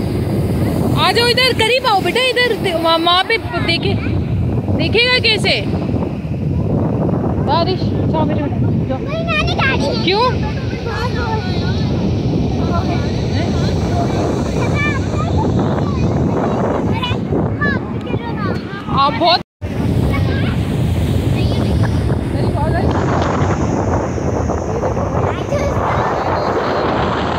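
Waves crash and roar on the shore.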